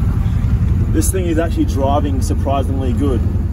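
A young man speaks close by.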